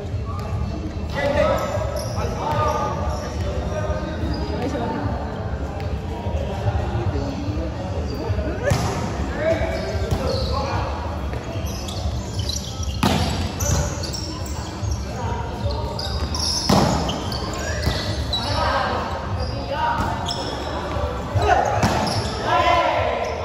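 Young men shout and call out to each other nearby.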